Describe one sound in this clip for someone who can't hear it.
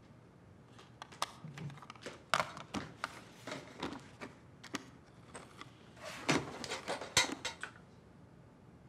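Small clicks come from a combination lock's dials turning.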